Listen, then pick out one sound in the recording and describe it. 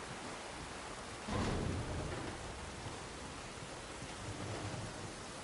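Water rushes steadily.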